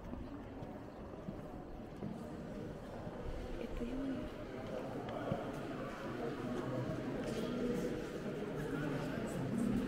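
Men and women talk quietly at a distance in a large echoing hall.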